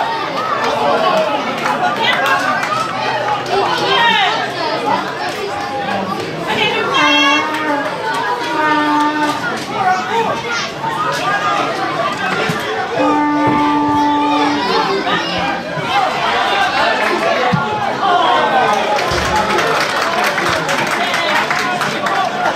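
Young players shout to each other across a field.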